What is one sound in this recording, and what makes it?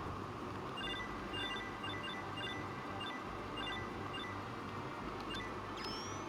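Crystals chime softly as they are collected.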